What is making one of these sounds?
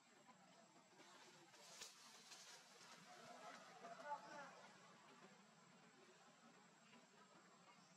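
Leaves rustle as branches are brushed aside.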